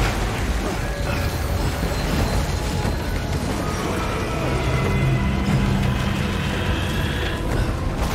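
Waves of rough water surge and splash.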